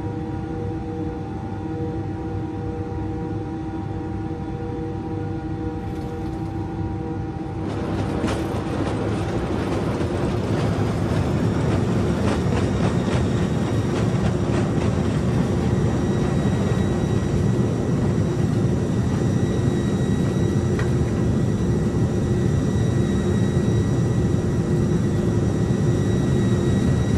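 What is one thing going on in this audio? Aircraft wheels rumble over the runway.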